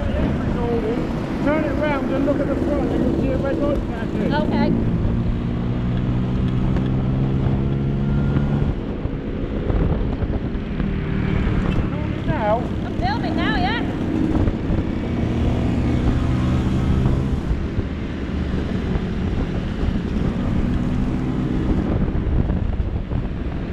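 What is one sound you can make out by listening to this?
Other scooters ride by nearby with buzzing engines.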